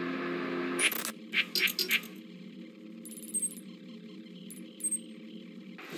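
Menu beeps and clicks sound in short bursts.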